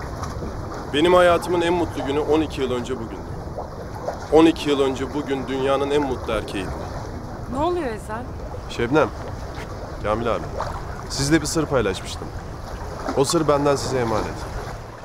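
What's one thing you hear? A man speaks firmly at close range.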